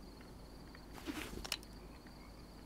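A flashlight clicks on.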